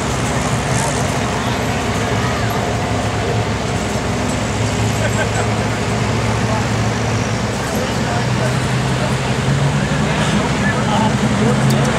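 A heavy pulling engine roars loudly and steadily, growing louder toward the end.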